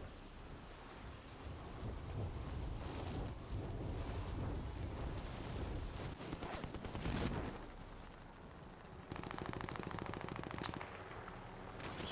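Wind rushes steadily past during a fast fall through the air.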